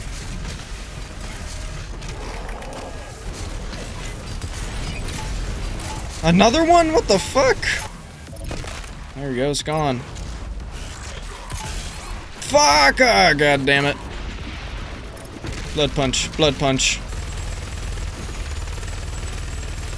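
Heavy guns fire in loud bursts.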